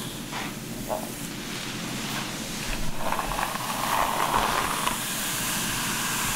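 A brush sweeps softly through long hair.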